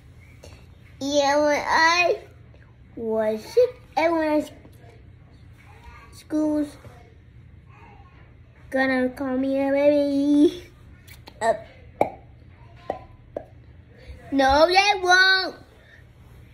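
A young child speaks up close in short, high, sing-song bursts.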